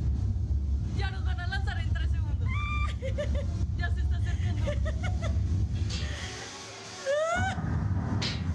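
Young women laugh excitedly nearby.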